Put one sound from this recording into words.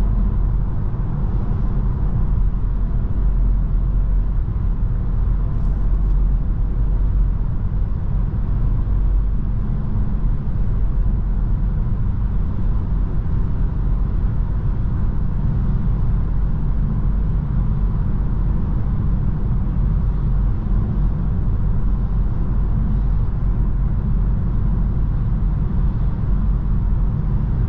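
Tyres roar steadily on the road surface.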